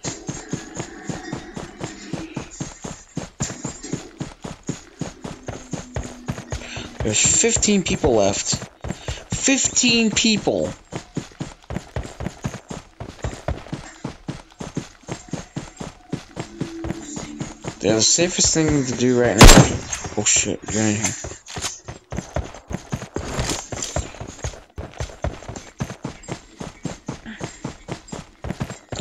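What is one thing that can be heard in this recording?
Quick footsteps run steadily over grass and dirt.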